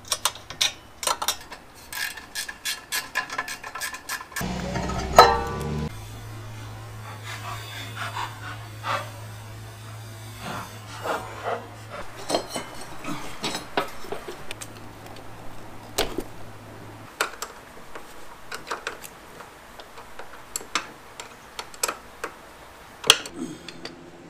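Metal tools clink and tap against an engine.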